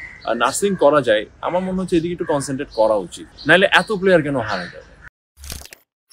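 A young man speaks calmly into microphones up close.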